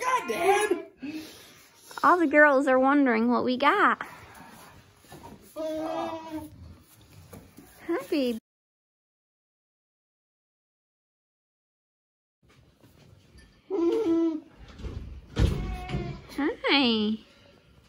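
Goats bleat loudly and repeatedly nearby.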